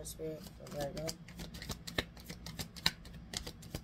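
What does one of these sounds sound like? Cards rustle and flick as they are shuffled by hand.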